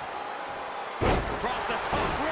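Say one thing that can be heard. A body slams hard onto a wrestling ring mat with a loud thud.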